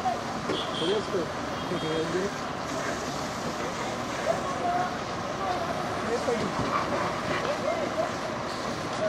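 Water sprays hard from a hose onto a burning car.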